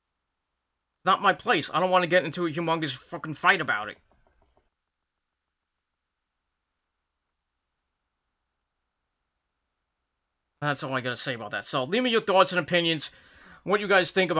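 A middle-aged man speaks calmly and close up, in short bursts.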